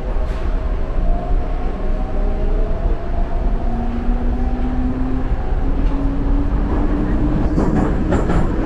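Train wheels squeal and whine against the rails.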